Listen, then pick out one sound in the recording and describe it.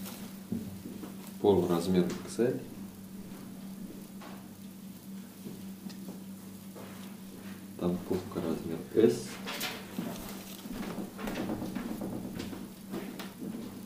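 Fabric rustles as clothing is handled and laid down.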